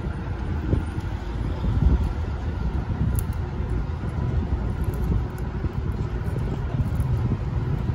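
Wires and metal clips rustle and knock softly as they are handled.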